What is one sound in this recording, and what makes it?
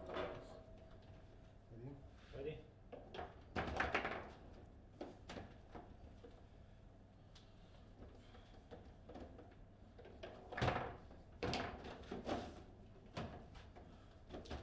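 Metal rods of a foosball table clack and rattle as they are spun.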